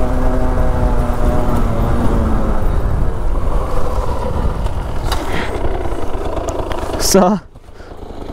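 A motorbike engine drones steadily up close as it rides along.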